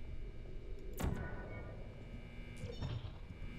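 A futuristic gun fires with a sharp electronic zap.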